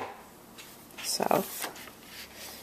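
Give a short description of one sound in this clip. A paper page rustles as it turns.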